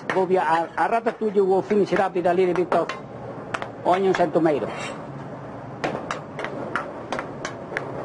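A utensil scrapes and clinks against a metal pan.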